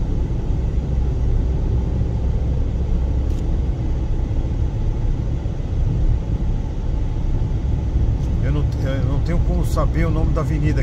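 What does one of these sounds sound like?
A car drives along an asphalt road, with a low road rumble heard from inside the car.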